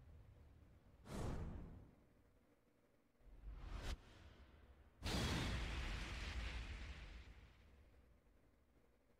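Heavy whooshing impacts boom and rumble, each dying away.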